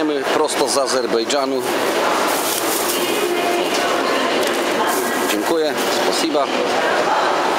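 A man speaks nearby in a lively voice.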